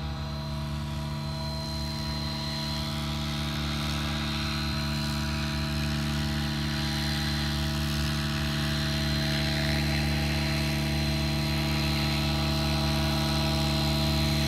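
A model helicopter's rotor and motor whine steadily, growing louder as it comes closer.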